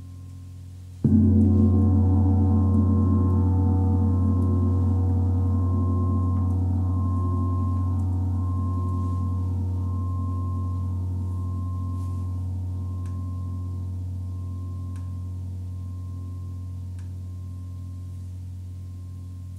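A large gong is struck hard and booms, then slowly rings out and fades.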